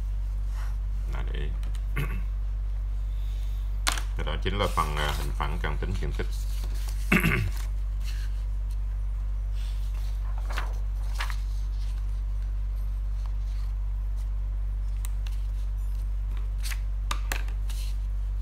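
Sheets of paper rustle and flap as they are handled.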